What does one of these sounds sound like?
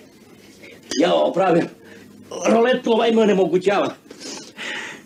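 An older man talks loudly and excitedly.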